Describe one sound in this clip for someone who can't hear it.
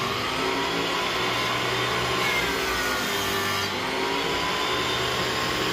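A thickness planer whines loudly as it shaves a board.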